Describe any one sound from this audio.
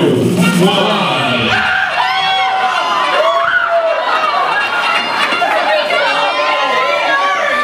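A crowd of women chatters and cheers.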